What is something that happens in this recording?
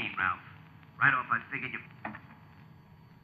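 An elderly man speaks briefly nearby.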